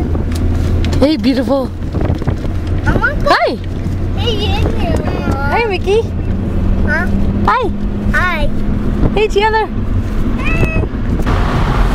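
A young child chatters and squeals up close.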